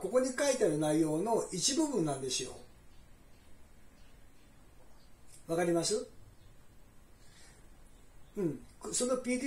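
A middle-aged man speaks calmly into a phone, close by.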